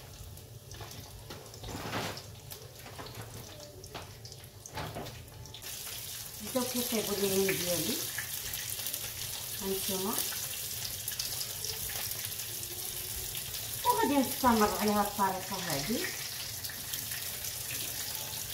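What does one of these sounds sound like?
A metal utensil clinks against a pan.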